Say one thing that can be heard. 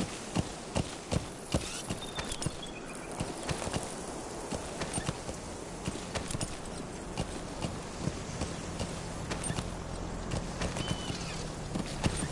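A horse's hooves thud rhythmically on dry ground at a gallop.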